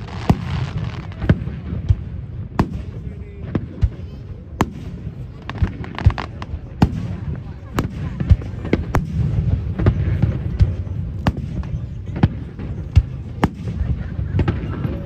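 Fireworks boom and crackle overhead, one burst after another.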